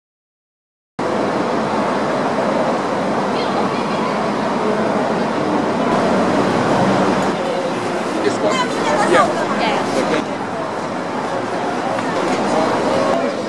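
A crowd chatters in a busy street market.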